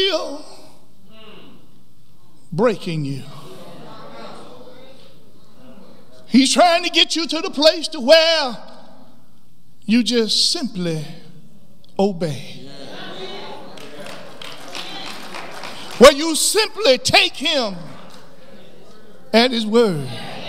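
A man preaches with animation through a microphone, with pauses between phrases, in an echoing hall.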